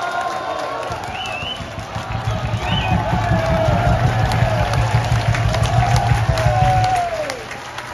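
A crowd claps in a fast, steady rhythm.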